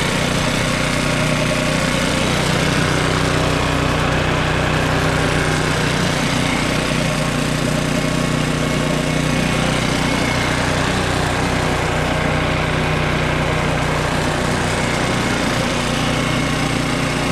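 A petrol lawnmower engine idles loudly and steadily close by.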